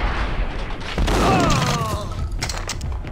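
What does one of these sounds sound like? A pump-action shotgun fires with a loud blast.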